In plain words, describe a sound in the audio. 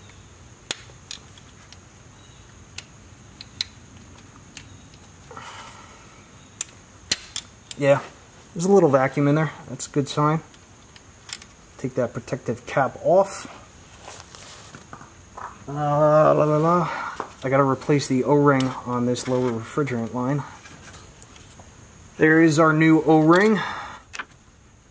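Metal car parts click and clink as they are handled.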